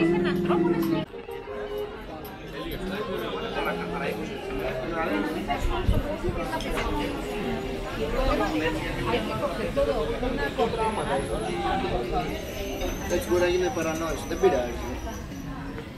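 Men and women chat and murmur nearby at outdoor tables.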